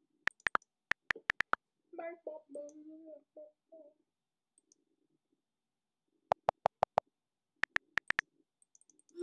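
A phone keyboard clicks as a message is typed.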